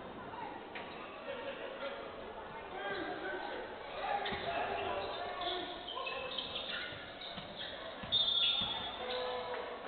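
A basketball bounces on the court floor.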